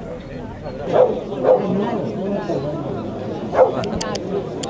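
A dog barks a few times nearby.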